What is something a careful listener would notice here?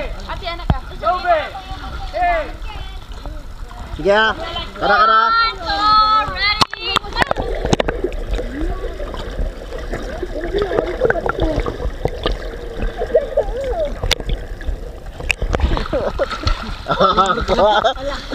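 Water splashes around swimmers.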